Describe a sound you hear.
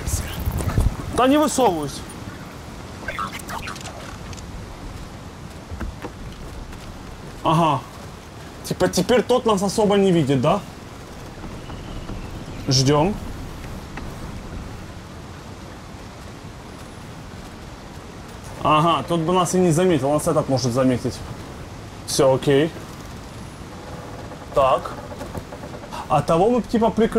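A man talks in short, lively bursts close to a microphone.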